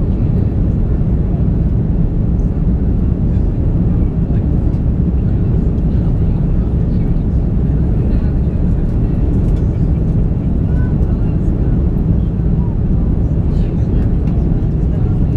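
Jet engines roar steadily from inside an airliner cabin.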